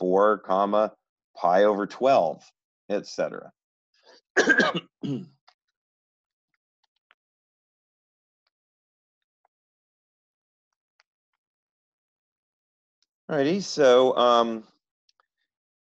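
A middle-aged man talks calmly into a close microphone, with pauses.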